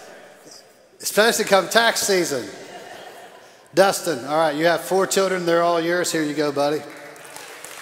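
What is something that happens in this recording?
A man speaks loudly with animation through loudspeakers in a large echoing hall.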